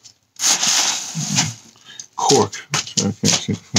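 A hand fumbles and rustles against a phone close up.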